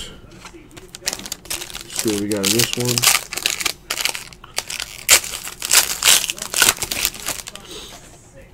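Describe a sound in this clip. Foil wrapping crinkles and tears as a pack is ripped open.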